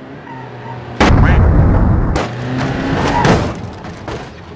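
A car crashes hard into something with a loud thud and crunch.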